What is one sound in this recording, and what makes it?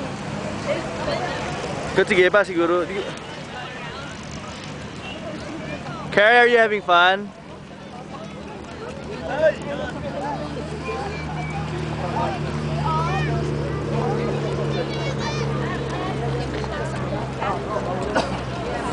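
People chatter in the background outdoors.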